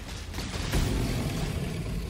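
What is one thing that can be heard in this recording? A lightning spell cracks in a video game.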